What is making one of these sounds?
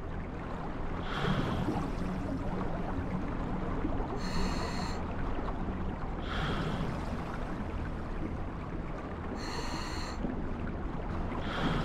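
Air bubbles gurgle as a diver breathes out.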